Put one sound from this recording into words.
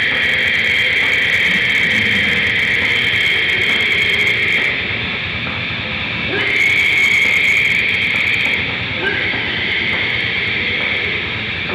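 A distorted electric guitar plays loudly and roughly, heard live through amplifiers.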